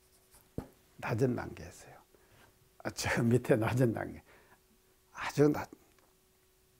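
An elderly man speaks calmly into a clip-on microphone, in short phrases.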